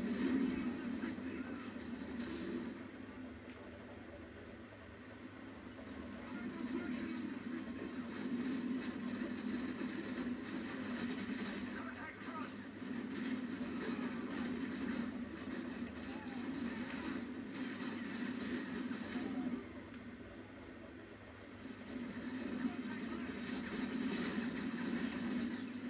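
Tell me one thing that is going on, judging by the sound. Gunfire and battle noise from a video game play through a television speaker.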